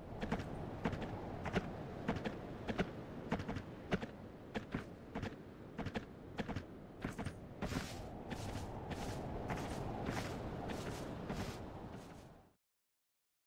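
A horse's hooves pound steadily at a gallop.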